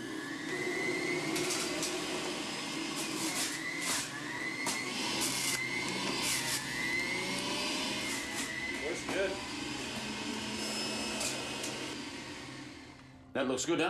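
A juicer whirs loudly as it grinds fruit.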